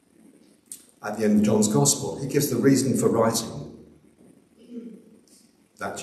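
A middle-aged man speaks calmly into a microphone in an echoing room.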